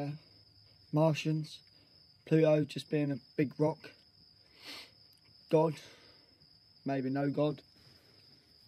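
A young man speaks quietly and tensely, close by.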